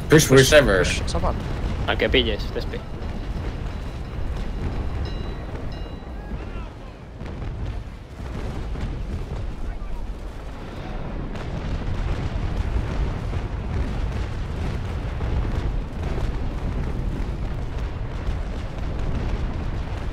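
Waves wash against a wooden ship's hull with a low, steady rumble.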